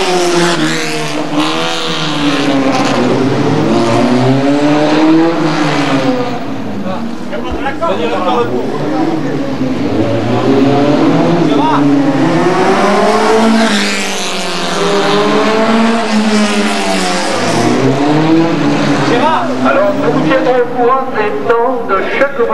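A racing car engine revs loudly, rising and falling in pitch as the car speeds past.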